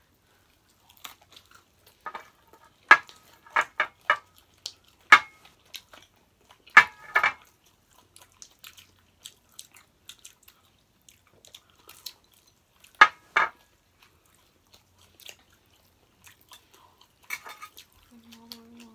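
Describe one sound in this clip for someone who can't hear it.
Two women chew and smack their lips loudly, close up.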